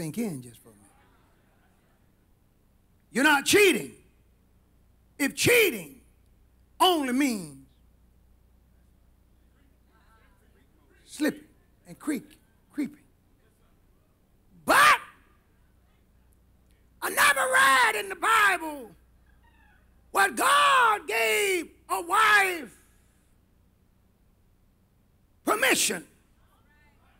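A middle-aged man preaches with fervour through a microphone in a large echoing hall, in short bursts with long pauses.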